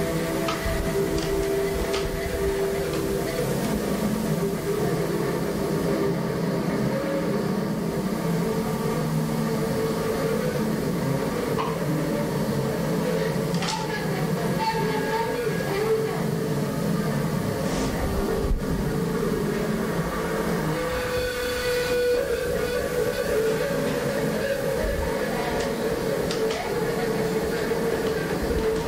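A busy street crowd murmurs steadily through a loudspeaker.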